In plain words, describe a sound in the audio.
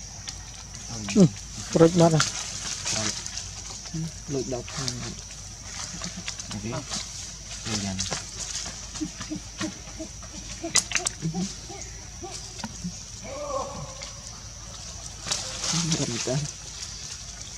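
A baby monkey squeals and whimpers close by.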